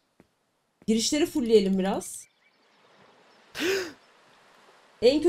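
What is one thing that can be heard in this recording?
A young woman speaks with animation through a microphone, close by.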